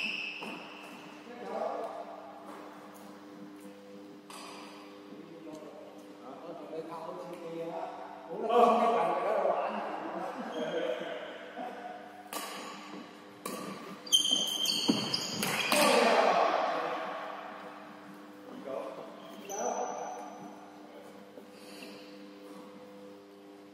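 Rackets hit a shuttlecock back and forth in a large echoing hall.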